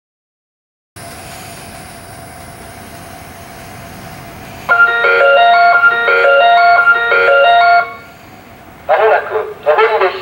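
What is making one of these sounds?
A freight train rumbles steadily past on the tracks.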